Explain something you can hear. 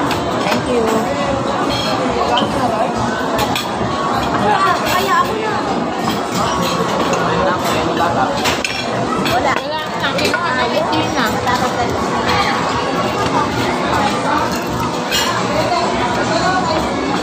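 Many voices chatter throughout in a busy, echoing room.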